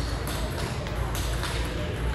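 Ping-pong paddles hit a ball back and forth.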